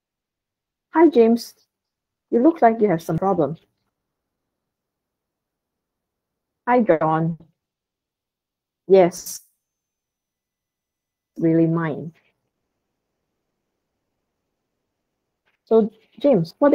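A woman speaks calmly in short phrases through an online call.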